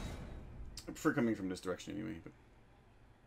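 A man speaks briefly into a nearby headset microphone.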